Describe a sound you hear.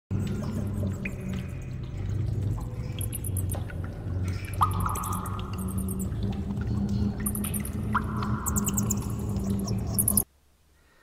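Electronic music plays through loudspeakers.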